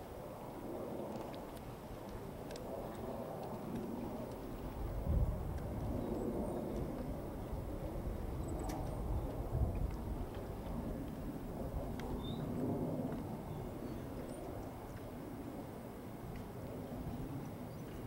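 Men talk quietly at a short distance.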